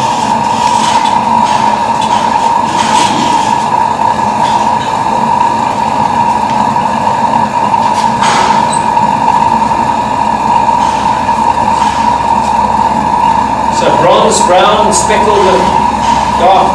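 A steel blade scrapes and hisses against a spinning grinding wheel.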